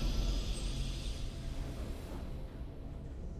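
A triumphant video game fanfare rings out and fades.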